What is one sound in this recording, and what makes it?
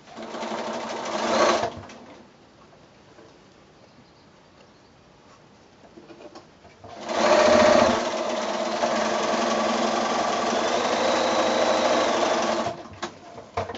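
A sewing machine whirs as it stitches in quick bursts.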